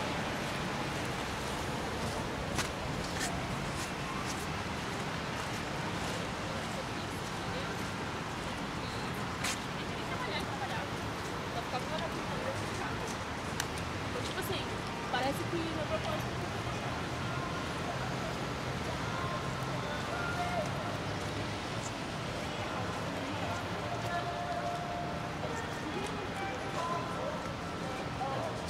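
A crowd murmurs in the distance outdoors.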